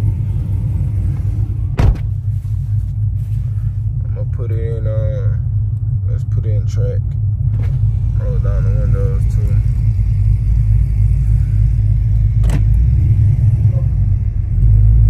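A car engine idles with a deep, steady rumble that grows louder toward the end.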